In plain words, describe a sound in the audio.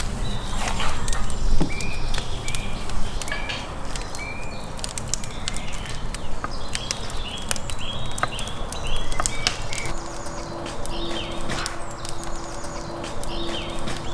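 A knife chops on a wooden board with sharp knocks.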